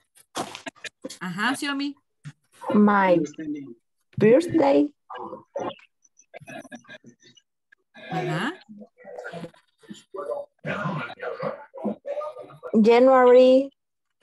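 A woman speaks with animation through an online call.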